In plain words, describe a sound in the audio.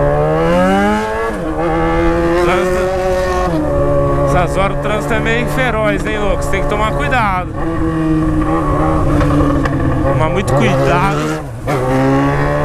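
A motorcycle engine roars and revs up and down close by.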